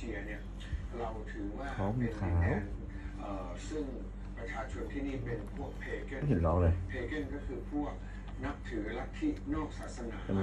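A cloth rubs softly against a cat's fur.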